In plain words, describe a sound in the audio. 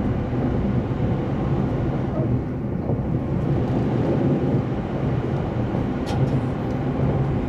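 A train rumbles steadily as it rolls along.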